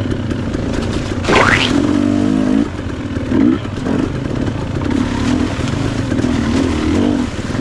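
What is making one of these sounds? Tyres splash through muddy water.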